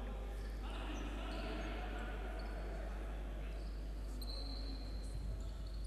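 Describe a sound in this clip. Sneakers squeak on a hard court in an echoing hall.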